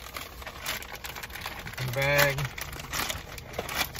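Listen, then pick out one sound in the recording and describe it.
A plastic bag crinkles and rustles in a man's hands.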